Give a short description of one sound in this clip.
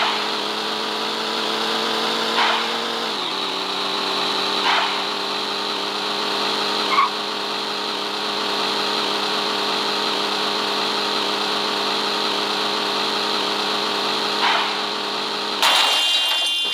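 A racing game's sports car engine roars at a steady high pitch.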